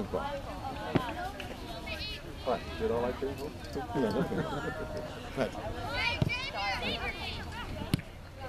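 A soccer ball is kicked with a dull thump.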